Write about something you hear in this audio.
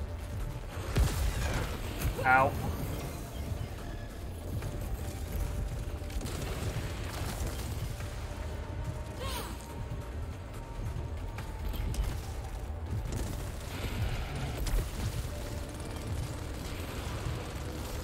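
Energy weapons fire in sharp bursts.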